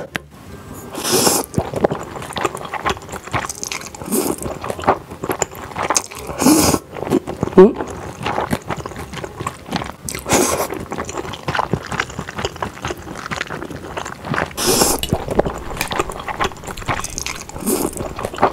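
A young woman slurps noodles loudly, close up.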